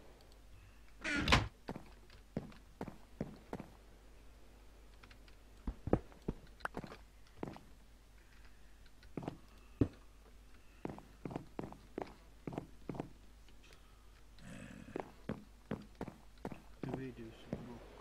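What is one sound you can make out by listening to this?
Footsteps tap on wooden boards.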